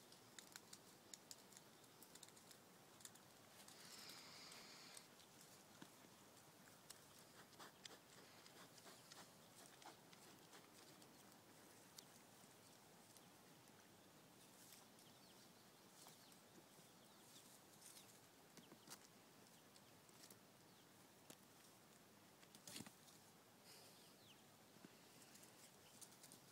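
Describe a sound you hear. Light steps rustle on dry leaves and twigs.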